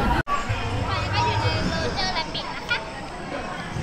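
A young child speaks close by.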